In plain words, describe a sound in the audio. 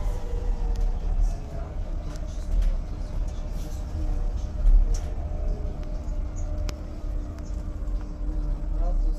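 Loose fittings rattle and click inside a moving bus.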